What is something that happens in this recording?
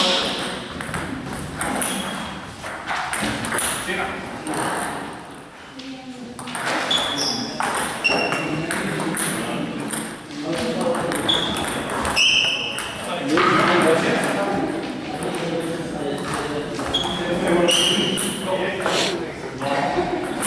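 A table tennis ball clicks back and forth off paddles and a table in an echoing hall.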